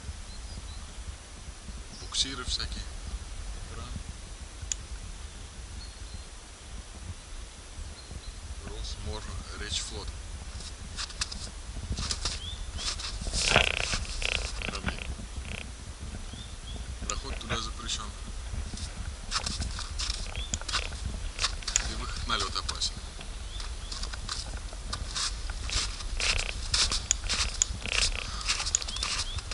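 Wind rumbles across the microphone outdoors.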